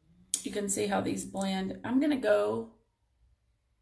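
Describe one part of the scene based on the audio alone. A woman talks calmly, close to the microphone.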